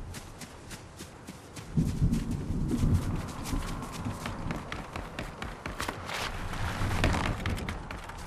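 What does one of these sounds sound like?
Footsteps patter quickly over grass and rock.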